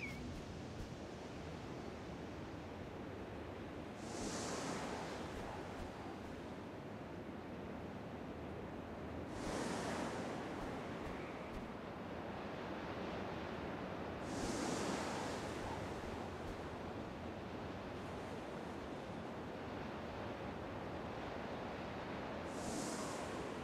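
Wind rushes steadily, swelling in gusts every few seconds.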